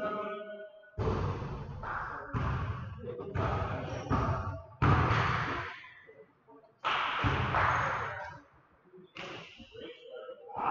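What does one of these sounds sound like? A basketball bounces and thuds on the floor.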